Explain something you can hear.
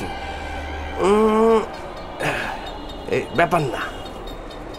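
A man sings loudly and with feeling.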